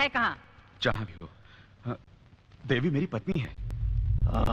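A man speaks with emotion, close by.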